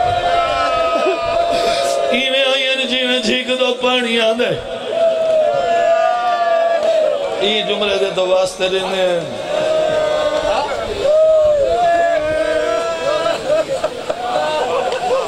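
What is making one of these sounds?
A man recites in a loud, singing voice through a microphone and loudspeakers.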